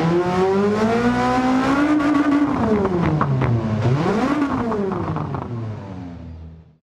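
A racing car engine roars loudly, its pitch rising and falling as it shifts gears and brakes, then fades away into the distance.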